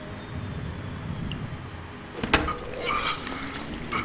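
A washing machine door clicks and swings open.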